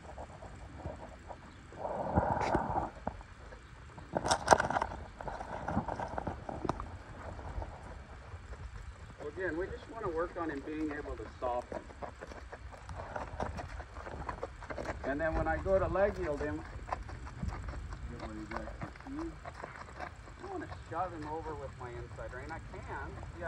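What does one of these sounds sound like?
A horse's hooves thud softly as the horse walks on sand.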